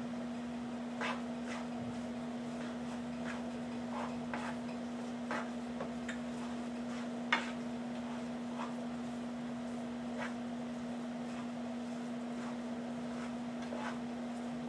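A spatula scrapes and taps in a frying pan.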